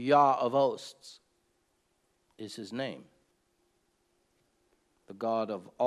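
An older man speaks calmly and slowly, close to a microphone, with pauses.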